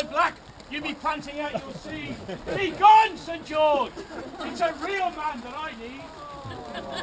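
A man speaks loudly to a crowd outdoors.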